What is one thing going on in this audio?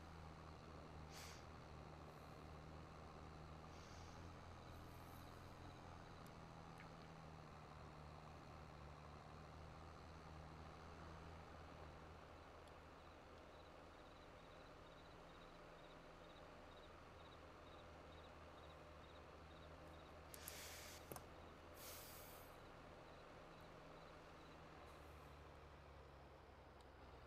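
A tractor engine drones steadily as it pulls a trailer along a road.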